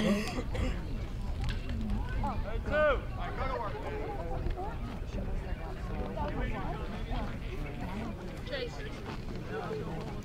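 Spectators and players shout and call out outdoors at a ball game.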